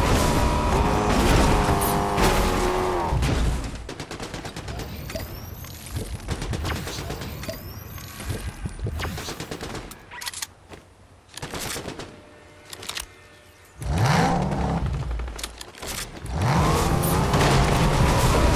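A car engine revs and roars.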